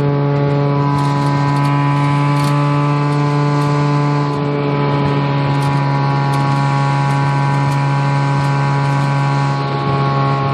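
A car engine idles with a steady, droning hum from close by.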